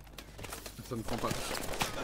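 A gun fires a short burst nearby.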